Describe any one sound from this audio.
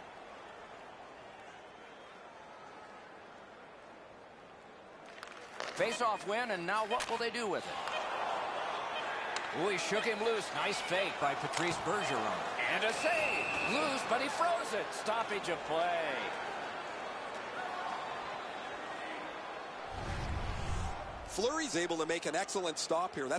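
A large arena crowd murmurs and cheers.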